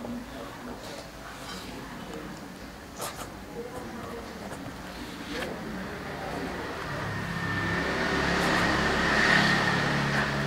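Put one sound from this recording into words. Stiff paper rustles as sheets are handled.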